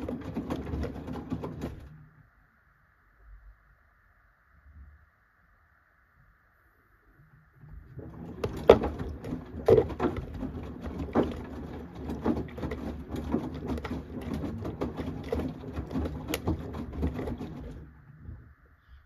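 A washing machine drum turns, tumbling wet laundry with sloshing water and soft thuds.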